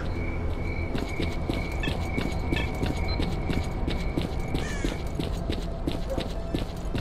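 Footsteps crunch through grass outdoors.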